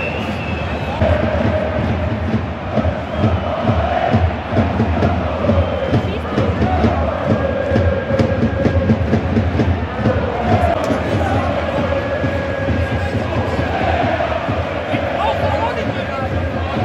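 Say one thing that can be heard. A large stadium crowd chants and sings loudly, echoing around the stands.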